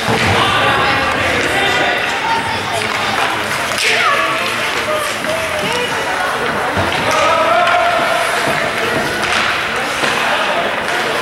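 Spectators close by chatter and call out.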